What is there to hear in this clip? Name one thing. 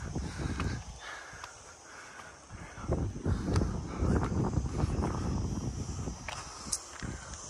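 Footsteps crunch and scuff on a rocky, gravelly trail.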